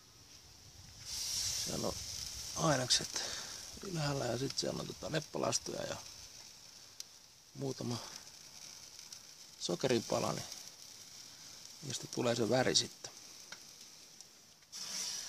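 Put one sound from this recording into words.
Fish sizzles softly inside a hot smoker.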